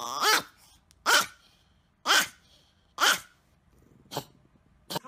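A small dog gives sharp, short yelps.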